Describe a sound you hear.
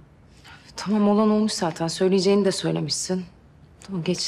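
A second young woman speaks quietly close by.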